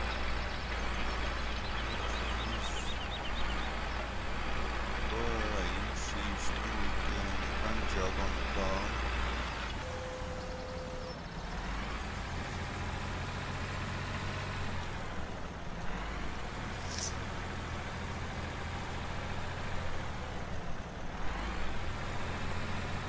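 A disc harrow rattles over the soil.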